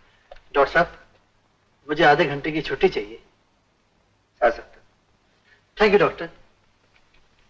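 A man speaks with animation at close range.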